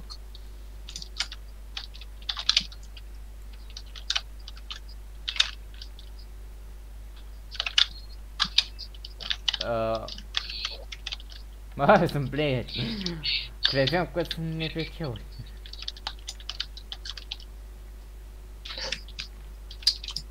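Short bright chimes ring out as coins are picked up, one after another.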